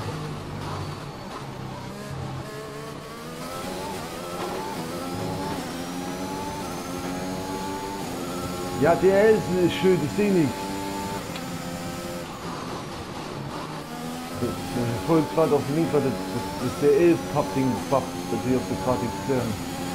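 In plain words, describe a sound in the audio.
A racing car engine screams at high revs, rising in pitch and dropping with each gear change.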